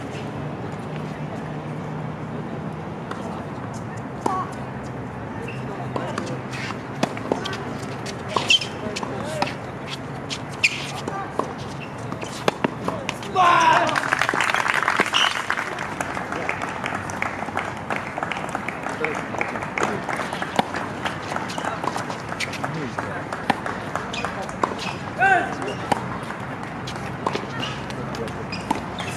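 Tennis balls are struck with rackets in a sharp, regular rally outdoors.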